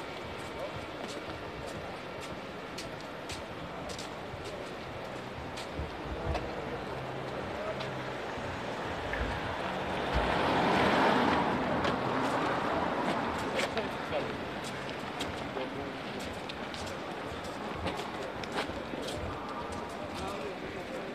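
A car engine hums as a car drives slowly nearby.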